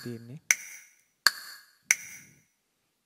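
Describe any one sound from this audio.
A drumstick taps an electronic drum pad, triggering sharp electronic hits.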